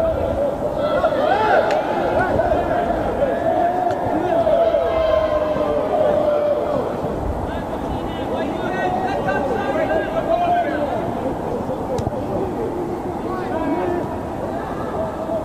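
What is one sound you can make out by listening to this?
Men shout to each other across an open pitch.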